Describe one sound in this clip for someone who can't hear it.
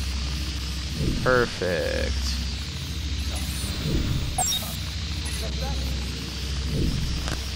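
A small drone's propellers buzz steadily.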